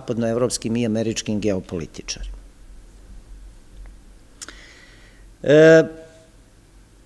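A middle-aged man speaks calmly into a microphone, reading out.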